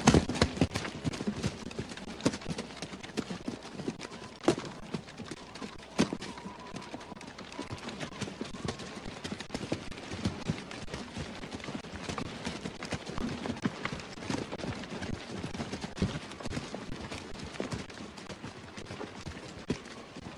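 Boots crunch and scuff on rough ground as soldiers run.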